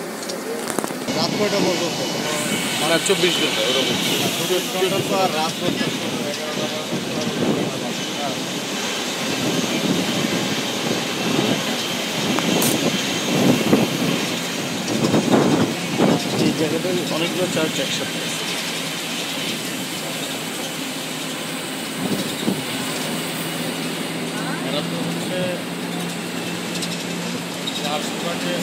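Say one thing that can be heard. A crowd of passengers chatters nearby.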